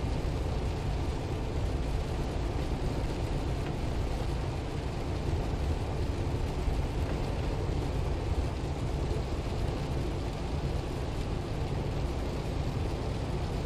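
A windshield wiper swishes across the glass.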